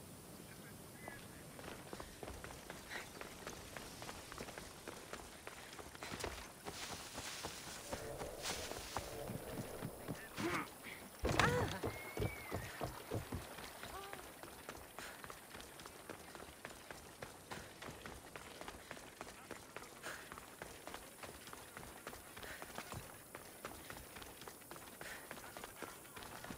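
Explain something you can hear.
Quick footsteps run on stone.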